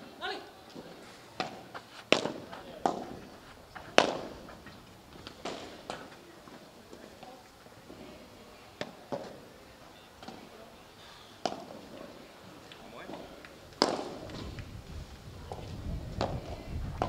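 A padel ball bounces off the court.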